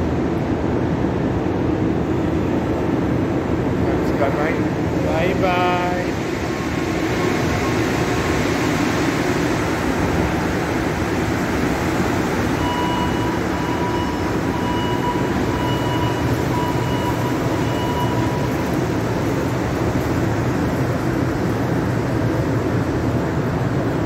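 A rubber-tyred metro train pulls out of an underground station.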